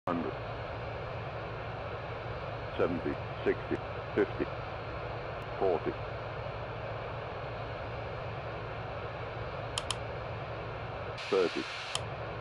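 A jet engine hums steadily.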